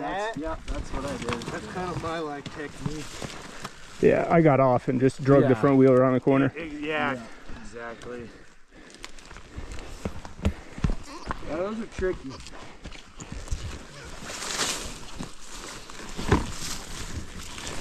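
Boots scuff and crunch on a dirt trail.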